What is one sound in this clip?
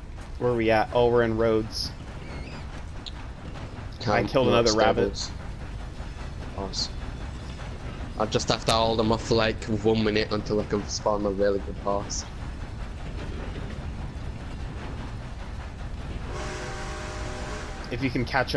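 A steam locomotive chugs and rumbles steadily along the tracks.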